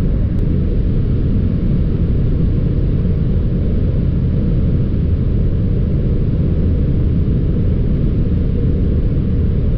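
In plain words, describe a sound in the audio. A car cruises at high speed, with a loud, steady low rumble of road and wind noise inside the cabin.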